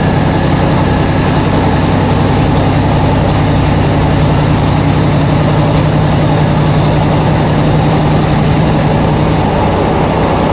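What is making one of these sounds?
A low engine hum drones inside the carriage.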